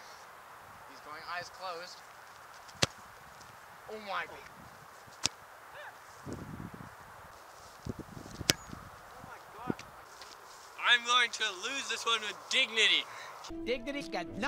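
Young men shout and call out outdoors.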